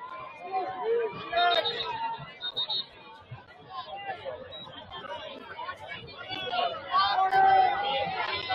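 A crowd of players and spectators shouts and cheers outdoors.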